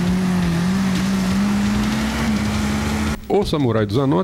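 An off-road vehicle's engine roars steadily as it climbs a muddy track.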